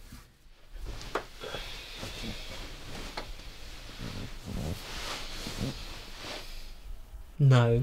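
Bed covers rustle as someone climbs into bed.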